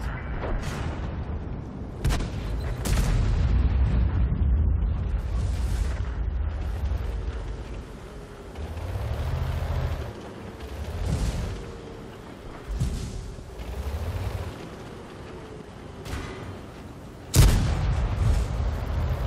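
A tank engine rumbles low and heavy.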